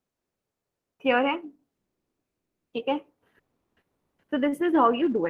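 A young woman speaks calmly over an online call, in short phrases.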